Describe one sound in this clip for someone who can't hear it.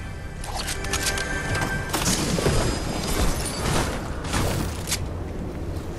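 A chest creaks open with a chiming sparkle.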